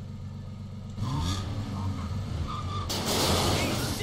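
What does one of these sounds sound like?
A car engine revs louder as the car drives off.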